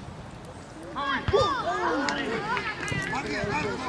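Children shout excitedly across an outdoor field.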